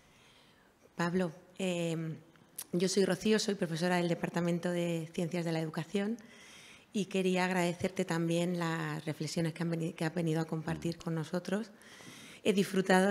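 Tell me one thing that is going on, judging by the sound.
A woman speaks calmly into a handheld microphone, heard through loudspeakers in a hall.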